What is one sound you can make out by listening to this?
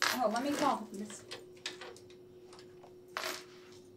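A computer keyboard clicks as keys are typed.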